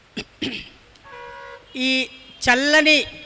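A middle-aged woman sings loudly through a microphone.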